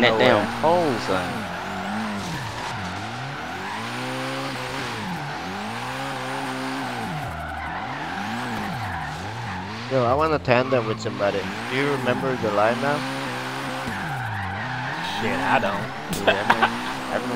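A car engine revs up and down hard.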